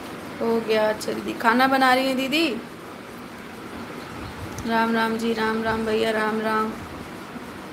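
A young woman talks close up in a drawn-out, sing-song voice.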